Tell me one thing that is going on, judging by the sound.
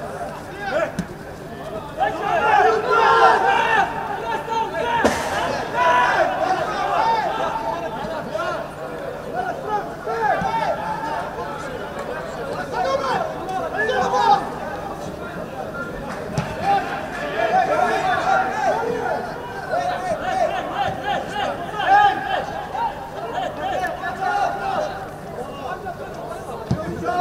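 A football is kicked on a grass pitch.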